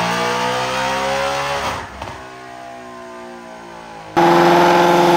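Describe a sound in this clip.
A car engine roars loudly, revving and then easing off.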